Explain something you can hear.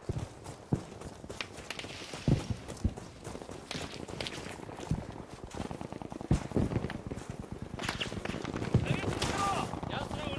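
Footsteps crunch quickly across sand and gravel.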